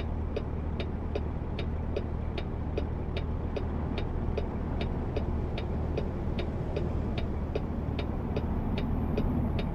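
A truck engine hums steadily at low pitch while driving.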